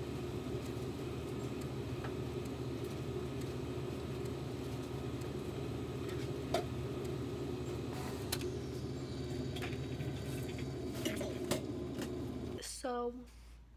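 A printer hums and whirs steadily as it feeds out paper.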